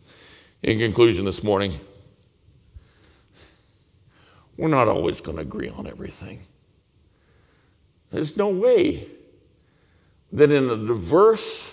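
An older man speaks with animation into a microphone, in short bursts with pauses.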